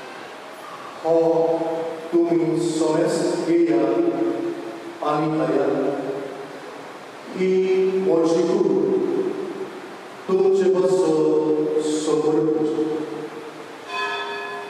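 A man chants in a singing voice through a microphone, echoing in a large hall.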